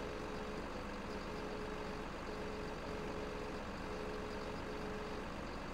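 A hydraulic crane arm whines as it moves.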